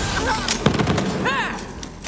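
A heavy blow strikes a creature.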